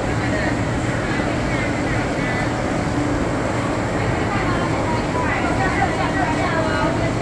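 A crowd of people chatters throughout.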